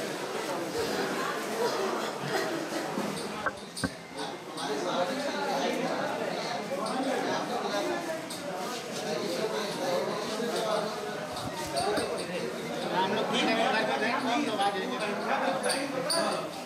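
Several men and women talk over one another in a busy room.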